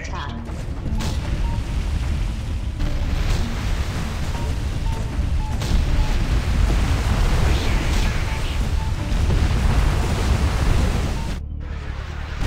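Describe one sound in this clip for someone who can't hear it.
Cannons fire in quick shots.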